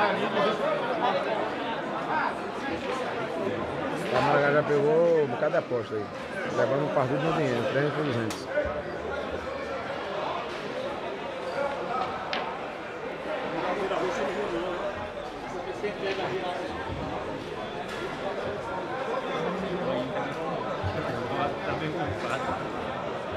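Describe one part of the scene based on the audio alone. A crowd of men chatters and calls out nearby.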